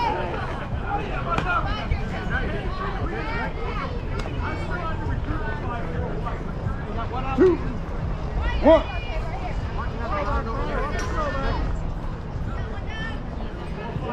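Men and women chatter and call out across an open field.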